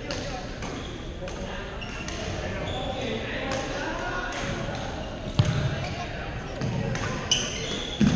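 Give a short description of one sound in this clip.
Rackets hit shuttlecocks with sharp pops in a large echoing hall.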